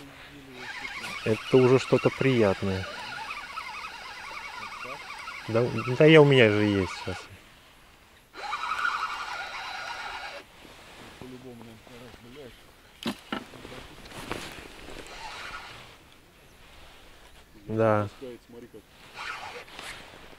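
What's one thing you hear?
A fishing reel clicks as its handle is wound.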